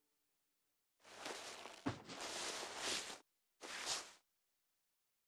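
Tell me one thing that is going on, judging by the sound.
Bed covers rustle as a man lies down on a bed.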